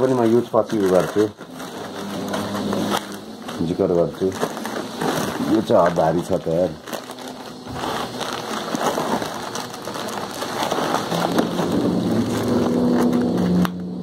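Cardboard flaps scrape and rustle.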